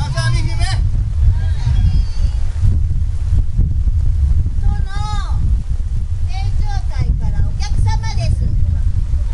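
A woman sings through loudspeakers in bursts.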